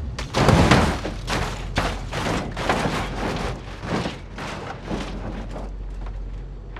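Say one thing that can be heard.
A car tumbles down a rocky slope with repeated crunching metal impacts.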